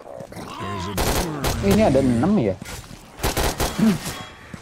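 A rifle fires short bursts of loud shots.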